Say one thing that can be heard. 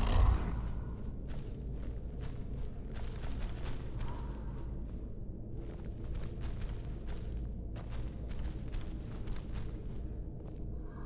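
Heavy clawed footsteps thud and scrape on stone.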